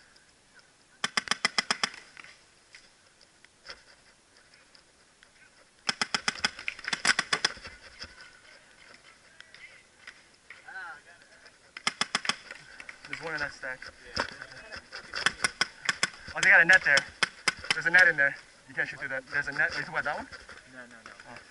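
Paintball guns fire rapid bursts of sharp pops close by.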